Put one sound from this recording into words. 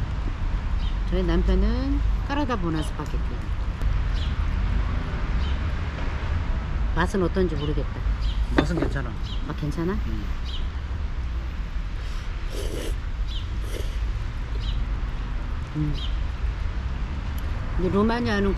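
Forks and spoons clink against plates.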